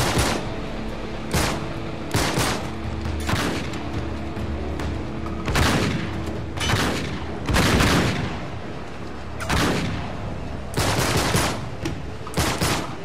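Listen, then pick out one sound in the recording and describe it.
Pistol shots fire again and again, loud and sharp.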